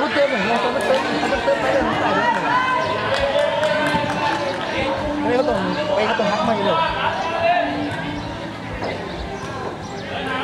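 Many voices of young people shout and chatter outdoors at a distance.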